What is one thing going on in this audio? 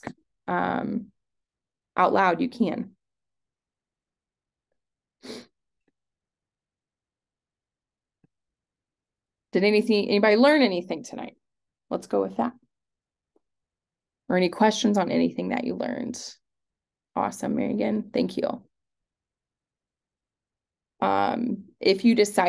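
A young woman speaks calmly in short bursts over an online call.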